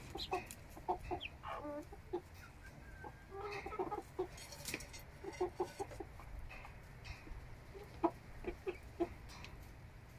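Chickens cluck softly and repeatedly close by.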